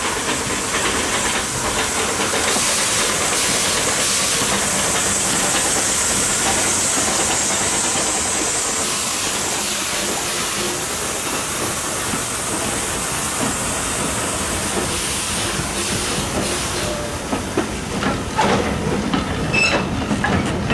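Train wheels clatter and squeal over the rails.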